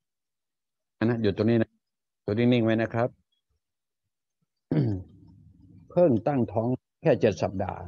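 An elderly man speaks with animation into a close microphone.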